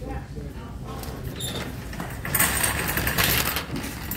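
A shopping cart rattles as it rolls.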